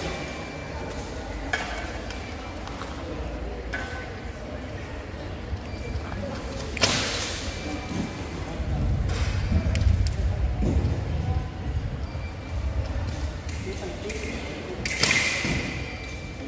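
Fencers' feet shuffle and stamp on a hard floor.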